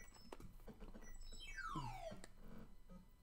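An electronic game tone swoops down in pitch.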